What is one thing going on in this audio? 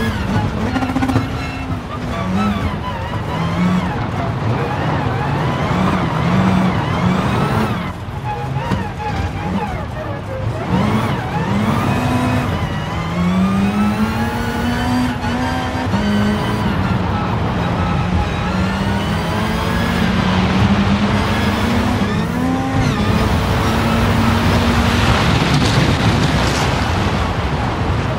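A rally car engine revs hard, rising and falling as gears change.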